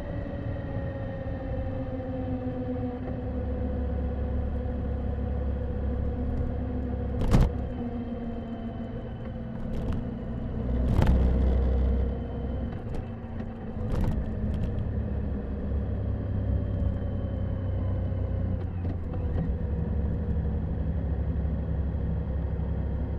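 A motorcycle engine hums steadily while riding, slowly dropping in pitch as it slows.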